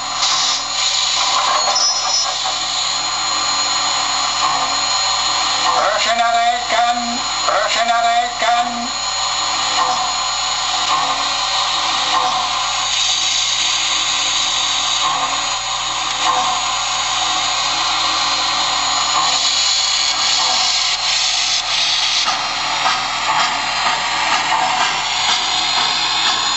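A model steam locomotive runs along the track with a steady whirring and rattling.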